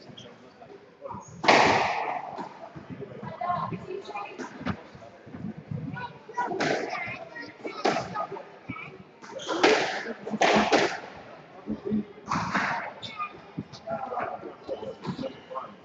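A squash ball smacks against the walls in an echoing court.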